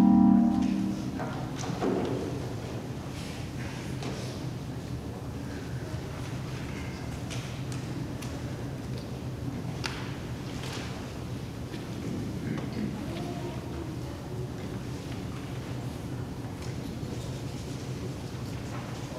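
Light clinks and knocks of objects being handled echo in a large hall.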